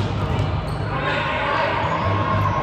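Young adult players call out to each other across the court.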